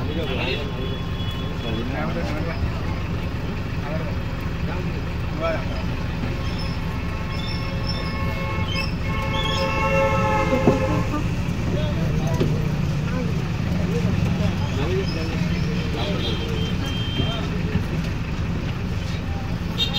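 A vehicle's engine rumbles steadily from close by.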